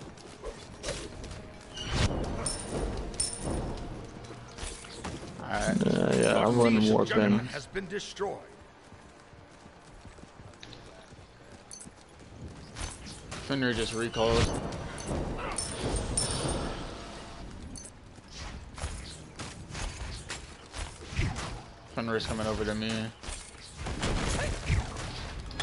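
Magical blasts and weapon strikes crash in quick bursts.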